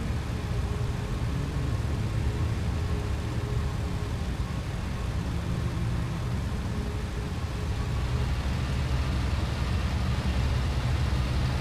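A propeller aircraft engine rumbles steadily, growing slightly louder toward the end.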